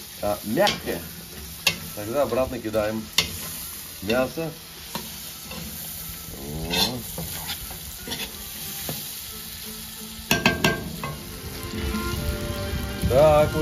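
A metal ladle scrapes and clinks against a pot.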